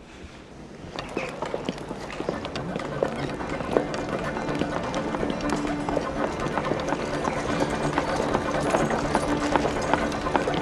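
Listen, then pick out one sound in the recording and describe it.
Horse hooves clop on a dirt yard.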